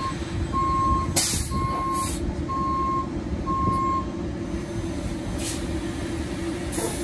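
A bus engine rumbles steadily as the bus pulls away.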